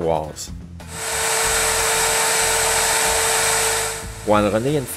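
A power saw whines loudly as it cuts through wood.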